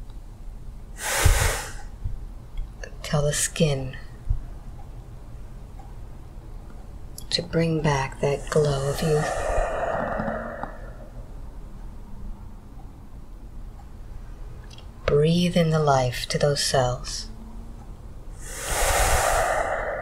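An elderly man breathes out heavily.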